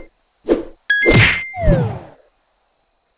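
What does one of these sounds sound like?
A mobile game plays a falling whoosh and thud at game over.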